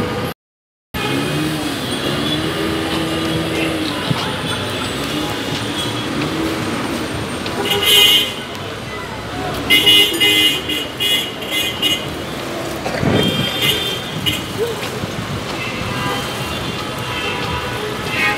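Engines of minibuses idle and drive past nearby.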